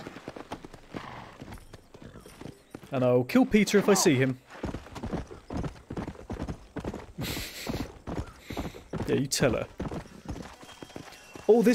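A horse's hooves clop on a dirt track.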